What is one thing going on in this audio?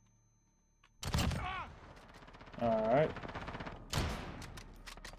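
A rifle fires loud, sharp shots that echo briefly.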